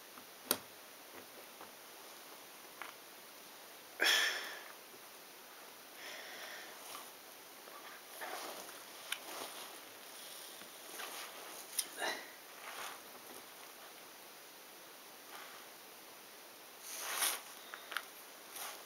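Jigsaw puzzle pieces click and rustle as a hand sorts them on a table.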